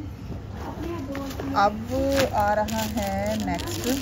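Cloth rustles as fabric is moved.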